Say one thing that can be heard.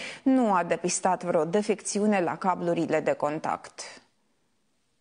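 A young woman speaks steadily and clearly into a microphone.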